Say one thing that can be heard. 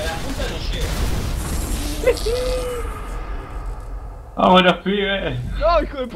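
A car explodes with a loud blast.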